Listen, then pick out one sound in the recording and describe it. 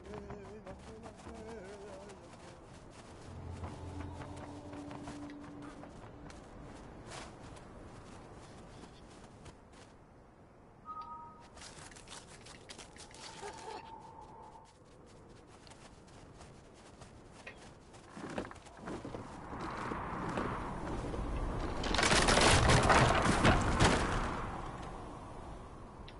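Wind howls across open snow.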